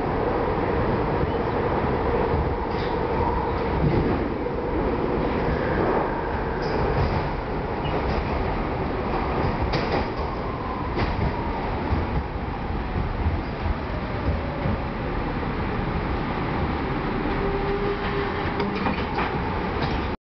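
A subway train rumbles and roars loudly through a tunnel.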